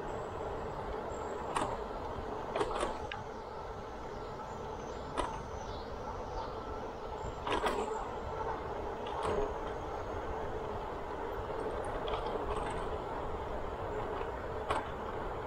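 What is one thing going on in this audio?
Wind rushes past a moving rider outdoors.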